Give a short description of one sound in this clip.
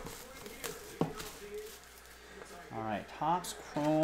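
Plastic wrap crinkles as a box is unwrapped.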